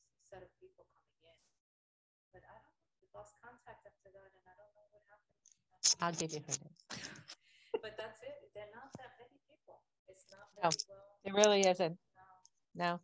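An elderly woman speaks and laughs over an online call.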